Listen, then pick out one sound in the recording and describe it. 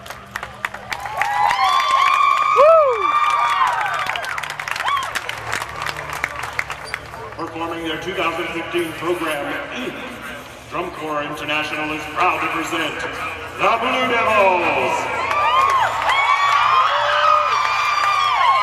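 A marching brass band plays loudly in a large open stadium.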